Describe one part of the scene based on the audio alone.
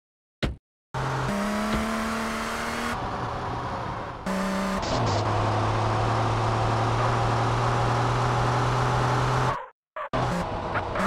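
A car engine roars steadily as the car drives.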